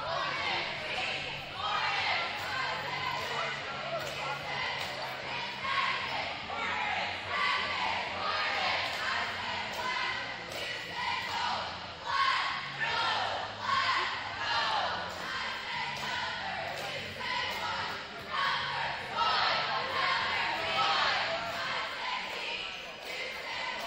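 A crowd chatters and murmurs throughout a large echoing gym.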